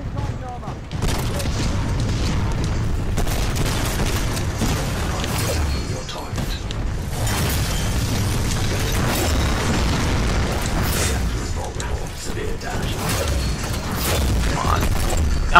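Explosions rumble and crash.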